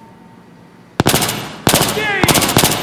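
Rapid gunshots fire loudly and echo.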